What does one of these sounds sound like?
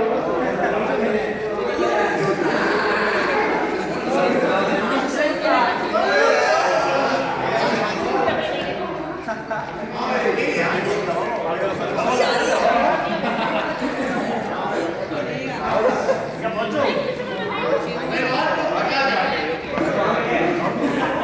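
A group of young men and women talk and laugh together in an echoing hall.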